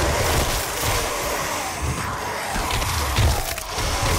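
Wet, crunching blows tear into a snarling monster.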